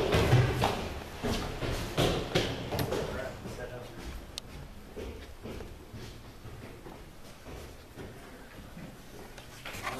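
Footsteps thud and shuffle on a carpeted floor.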